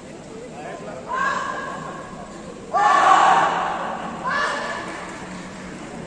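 A crowd cheers loudly in a large echoing hall.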